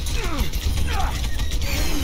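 A hammer swings and strikes with a heavy thud.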